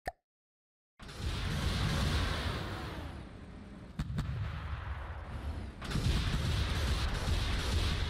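A rocket engine roars loudly and steadily.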